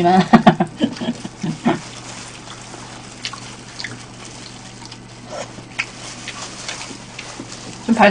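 A young woman chews food with wet smacking sounds.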